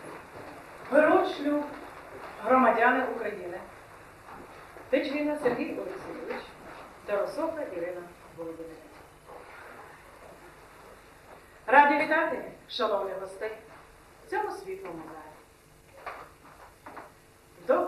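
A woman speaks formally and clearly, heard close.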